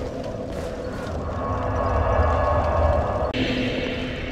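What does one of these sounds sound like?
A deep magical whoosh swells and then cuts off.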